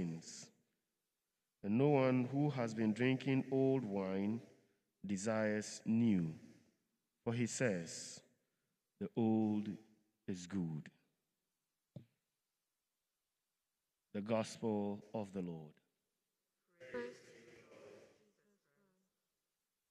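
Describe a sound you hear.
A man reads aloud in a calm, chanting voice through a microphone, heard in a large echoing room.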